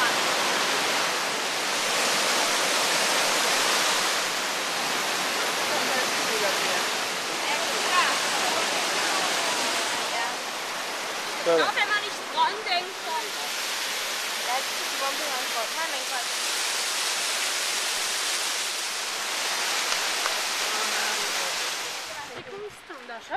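Water rushes and splashes down a waterfall.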